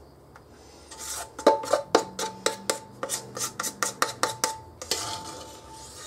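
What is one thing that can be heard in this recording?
A spatula scrapes and taps against a metal bowl.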